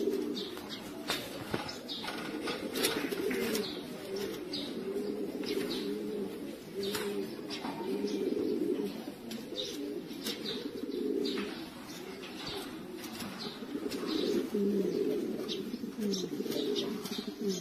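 Pigeons coo in low, throbbing murmurs close by.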